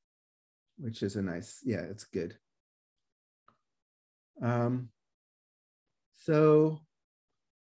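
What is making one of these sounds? A man speaks calmly into a microphone, explaining.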